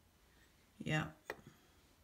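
A metal ring clinks against other jewelry as it is picked up.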